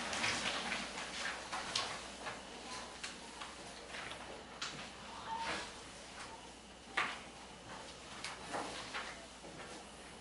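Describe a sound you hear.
A man erases a chalkboard with a rubbing scrape.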